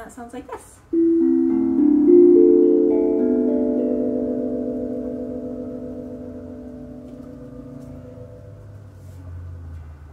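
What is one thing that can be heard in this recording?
A steel tongue drum is struck with a mallet and rings out in soft, slowly fading notes.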